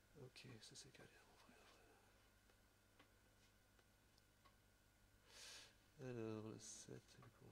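A man speaks quietly and casually close by.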